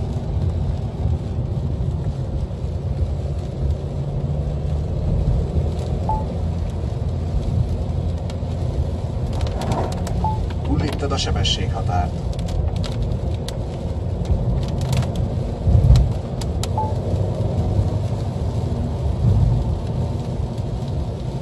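Windshield wipers swish back and forth across the glass.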